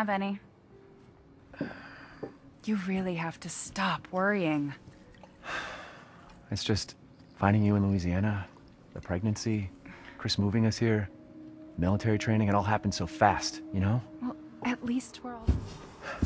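A young woman speaks softly and warmly.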